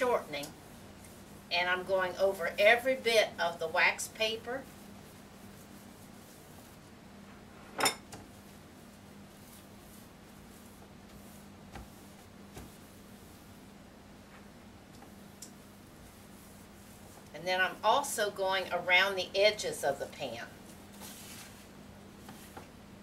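Hands pat and press dough on a board.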